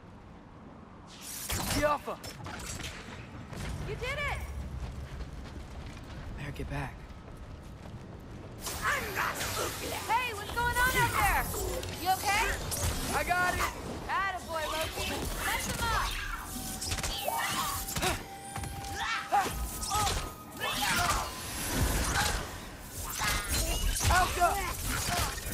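A bow twangs as arrows are loosed.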